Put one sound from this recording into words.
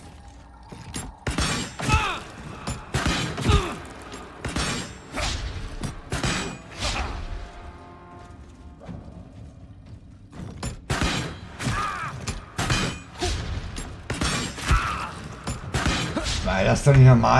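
Magic blasts and blows crash sharply in a fight.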